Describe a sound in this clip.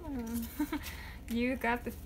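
Playing cards rustle and slide in a hand.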